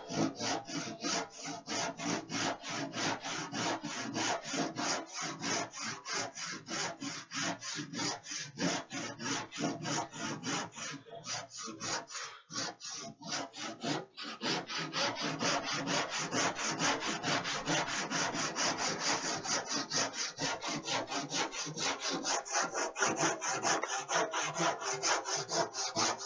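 A sanding block scrubs quickly back and forth over wood.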